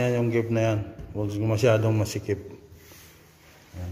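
A hand rubs across a smooth wooden panel.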